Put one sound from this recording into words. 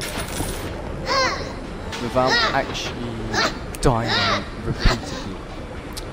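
A young girl speaks in a high, eerie voice.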